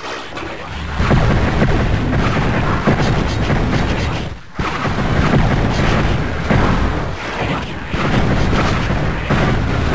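A magic weapon fires in rapid bursts with crackling blasts.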